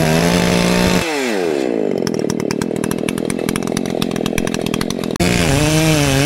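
A chainsaw drops to a low, rattling idle.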